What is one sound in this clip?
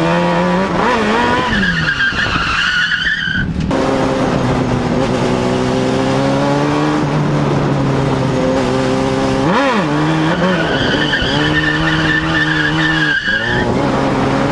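A car engine roars and revs hard, rising and falling in pitch.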